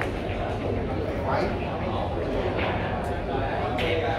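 Billiard balls clack against each other.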